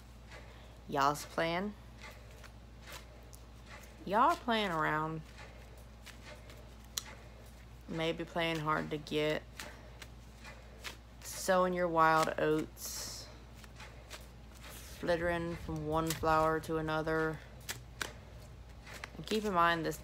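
A young woman speaks expressively in short bursts, close to the microphone.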